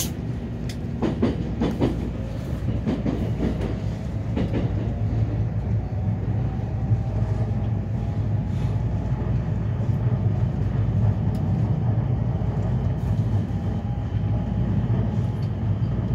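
Many footsteps shuffle and tap on a hard floor.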